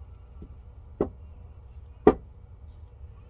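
A stone knocks down onto a table.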